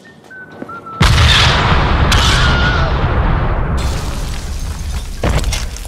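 An explosion booms and roars, then slowly dies away.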